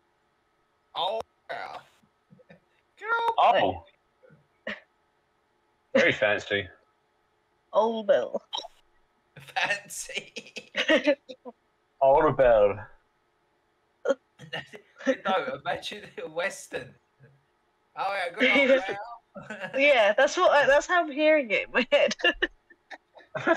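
A man talks casually over an online call.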